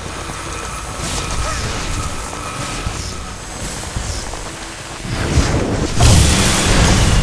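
Magic blasts burst with sharp bangs.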